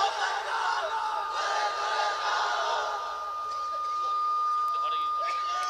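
A man preaches with animation through a microphone and loudspeakers.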